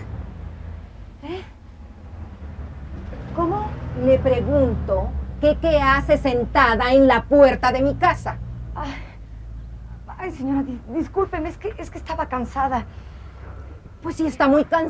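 A young woman speaks with agitation, close by.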